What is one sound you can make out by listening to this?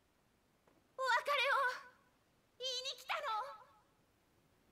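A young woman speaks softly and warmly.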